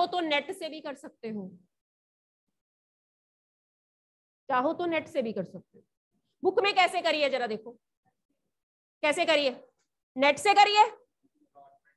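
A young woman speaks clearly into a clip-on microphone, in short phrases with pauses.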